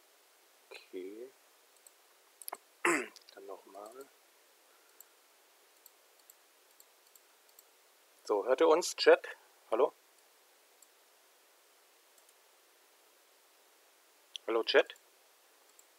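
A man talks casually over an online call, in short bursts.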